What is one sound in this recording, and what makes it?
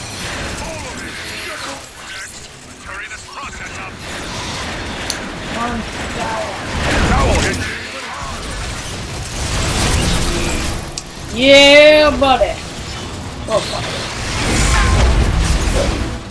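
Explosions boom.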